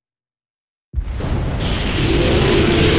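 A dust cloud rushes past with a deep roar.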